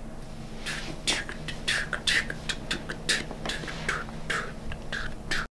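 A man shakes a rattle in quick, uneven bursts.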